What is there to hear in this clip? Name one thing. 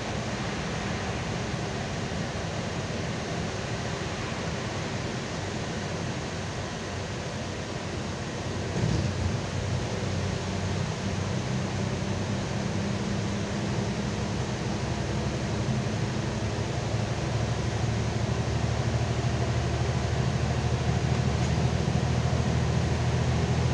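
Tyres hiss and rumble on a wet, slushy road.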